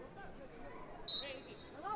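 A large crowd murmurs in a stadium outdoors.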